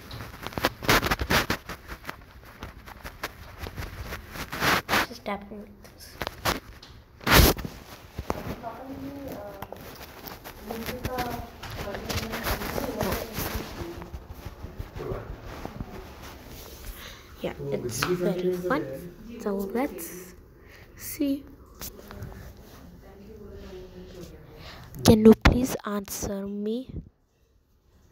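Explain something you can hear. A young boy talks through a phone call, close to the microphone.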